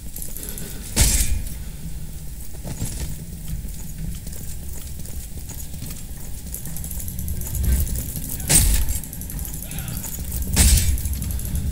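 Heavy weapons clash with loud, sharp impacts.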